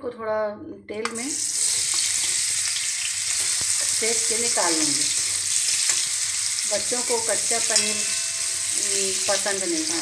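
Pieces of food drop into hot oil and sizzle loudly.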